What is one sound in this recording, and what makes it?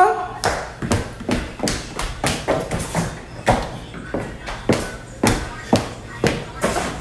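High heels clack sharply on a hard floor in a quick rhythm.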